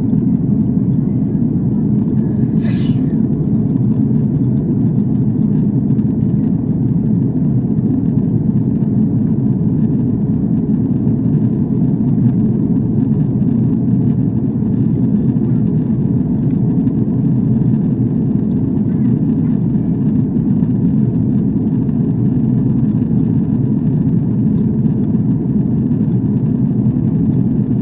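Jet engines roar in a steady, deep drone inside an airliner cabin.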